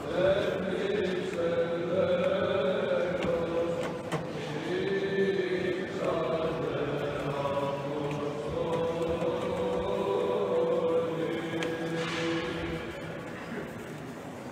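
Men sing a slow chant in an echoing stone hall.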